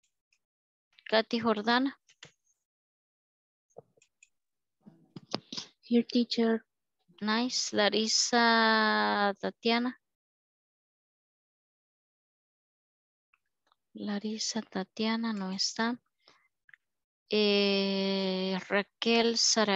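A woman speaks slowly and clearly through a headset microphone, as on an online call, pausing between phrases.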